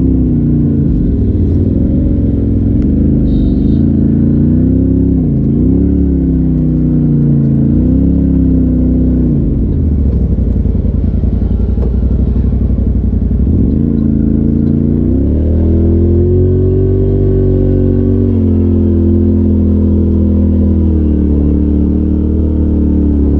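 An off-road vehicle's engine drones loudly close by, rising and falling in pitch as it revs.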